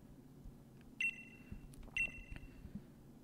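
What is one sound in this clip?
A short electronic chime beeps.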